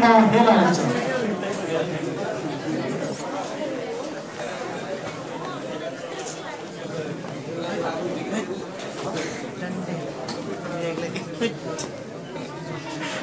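A crowd murmurs and chatters in a large hall.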